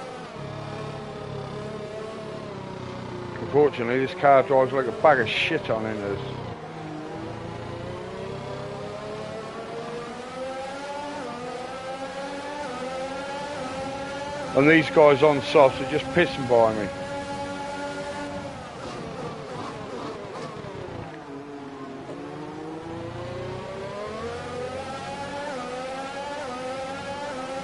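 A racing car engine whines loudly, rising and falling in pitch as it speeds up and shifts gears.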